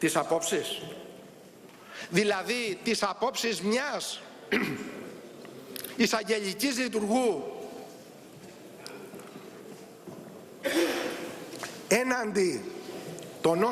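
A middle-aged man speaks forcefully into a microphone in a large echoing hall.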